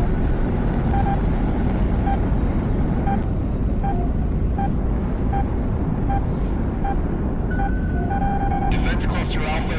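A warning alarm beeps in quick, regular pulses.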